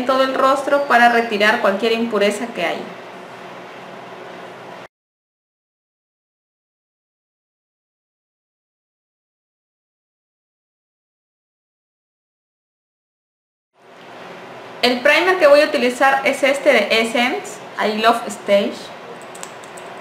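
A woman speaks calmly and close up to a microphone.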